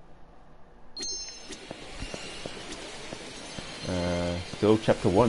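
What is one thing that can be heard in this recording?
Arcade machines chime and play electronic music.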